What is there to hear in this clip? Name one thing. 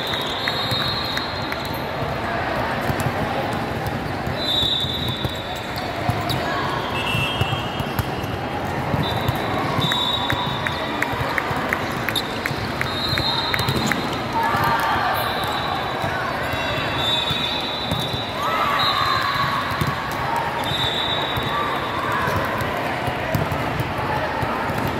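A crowd of spectators chatters in the echoing hall.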